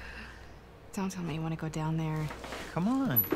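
A young woman speaks doubtfully, close by.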